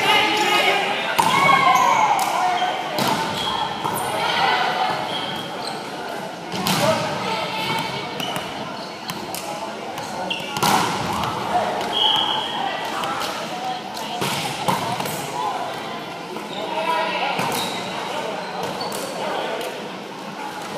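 Young men and women chatter and call out across a large echoing gym.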